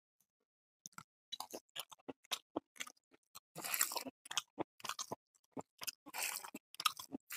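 A man chews and smacks his lips close to a microphone.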